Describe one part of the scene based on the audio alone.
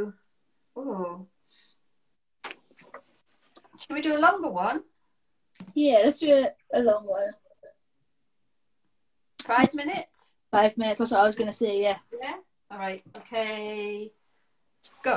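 A young woman talks cheerfully over an online call.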